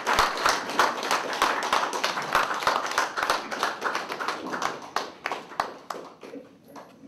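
Applause rings out in a room and fades away.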